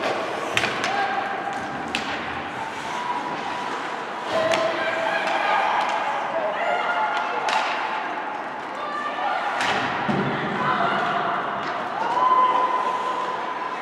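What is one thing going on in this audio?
Young players shout across an echoing rink.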